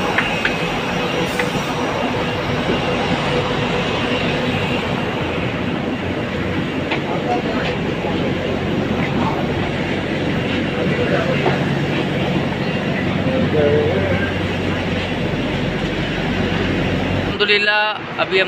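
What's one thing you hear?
A train rumbles and hums steadily.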